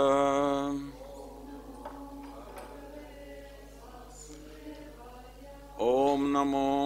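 A middle-aged man speaks softly into a microphone.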